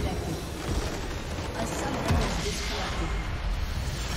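A building explodes with a deep, booming crash.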